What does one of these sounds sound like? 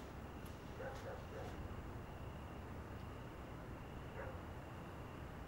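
A young man speaks quietly and briefly.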